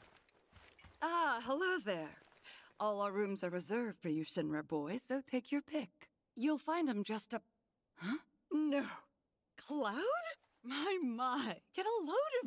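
A middle-aged woman speaks warmly and with surprise, close by.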